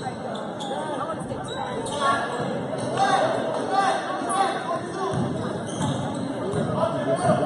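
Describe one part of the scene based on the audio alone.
A crowd of spectators chatters throughout, echoing in a large hall.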